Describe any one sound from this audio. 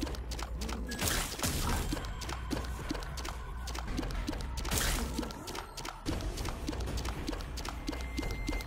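Enemies burst with wet splatting sounds.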